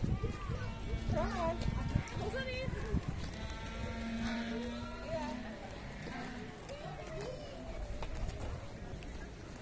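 Young children chatter and call out nearby outdoors.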